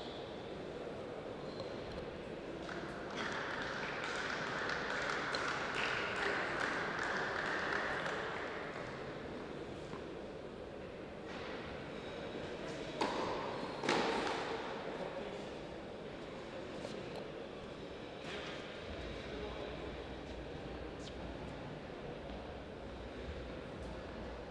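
Sneakers scuff softly on a hard court.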